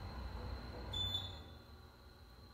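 An elevator chime dings once.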